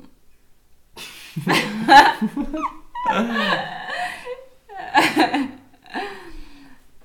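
A young man and a young woman laugh together close to a microphone.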